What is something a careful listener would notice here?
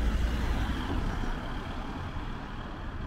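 A car passes close by and fades away.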